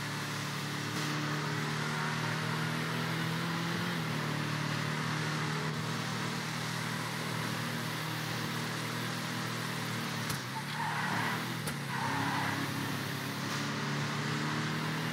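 A car engine hums steadily as a vehicle drives along a road.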